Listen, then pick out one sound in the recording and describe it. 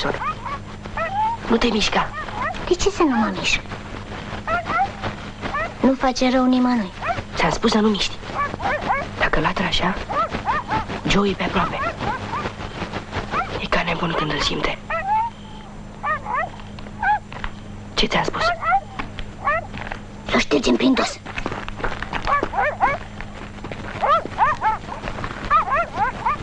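A boy speaks in a hushed, urgent voice.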